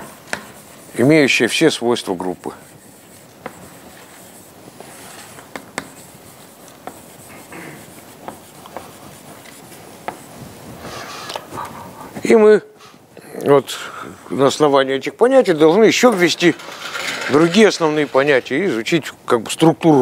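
An elderly man lectures aloud in a large echoing hall.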